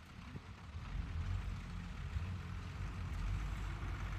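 A heavy truck rumbles as it drives slowly over rough dirt ground.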